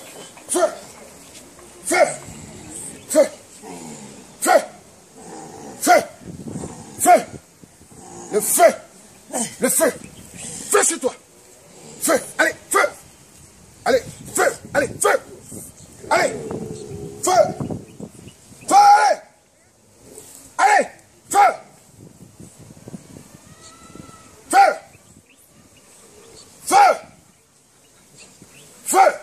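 A man cries out in short, loud bursts close by.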